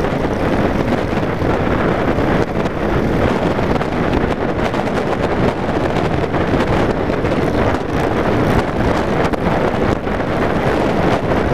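A motorcycle engine rumbles steadily while riding at speed.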